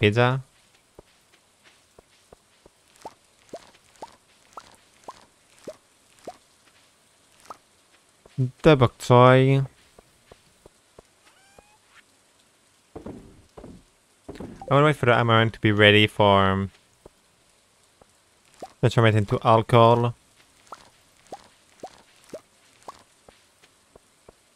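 Short soft pops sound as crops are picked, again and again.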